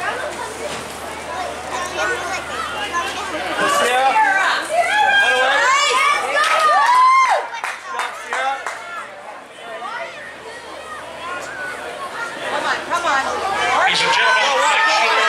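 Young women shout and call out to each other outdoors.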